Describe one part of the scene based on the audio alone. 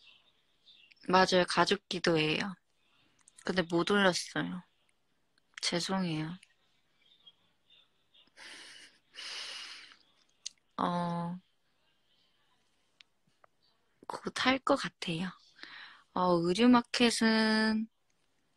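A young woman speaks softly and playfully close to a phone's microphone.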